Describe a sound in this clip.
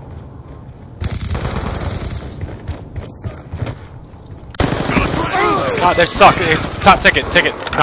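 Gunfire crackles in quick bursts.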